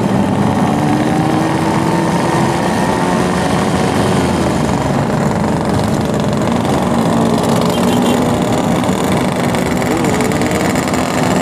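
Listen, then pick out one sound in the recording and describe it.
Other motorcycle engines drone nearby.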